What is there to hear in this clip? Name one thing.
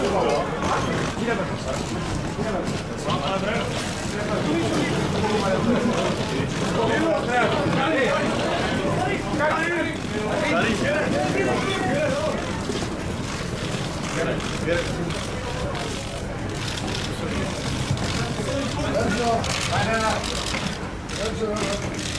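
A crowd of fans chatters and calls out outdoors.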